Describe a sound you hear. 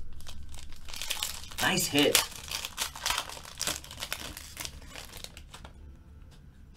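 Foil wrapping crinkles and tears as a pack is opened.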